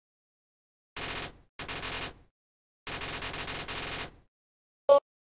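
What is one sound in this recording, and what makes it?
Rapid, buzzy electronic blips chatter in quick bursts.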